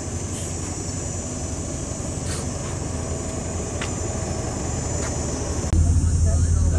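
A bus engine hums steadily nearby.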